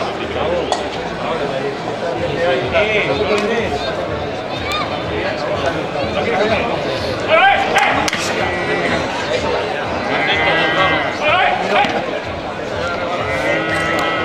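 A young man shouts to taunt a bull.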